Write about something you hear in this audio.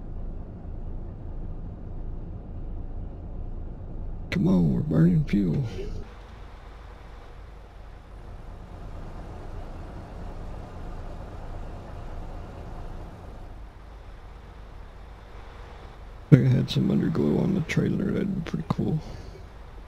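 A truck engine rumbles steadily at low speed.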